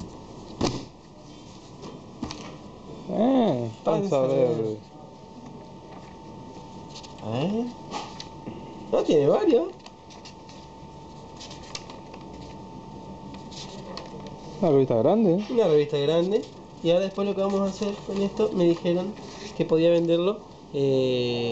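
Newspaper pages rustle as they are unfolded and turned.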